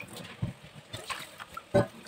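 Water pours into a metal bowl of rice.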